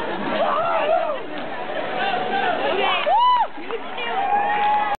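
A crowd of young people shouts and chatters loudly in a dense, noisy room.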